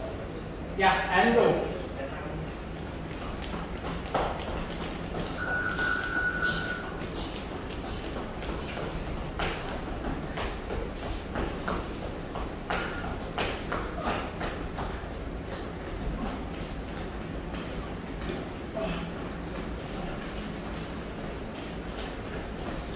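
Trainers thud and squeak on a hard floor as people jump.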